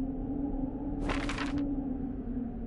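Paper rustles as a map unfolds.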